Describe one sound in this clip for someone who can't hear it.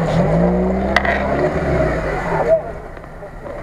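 A truck engine revs loudly, then drops away.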